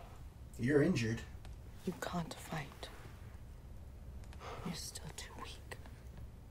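A young man speaks casually into a nearby microphone.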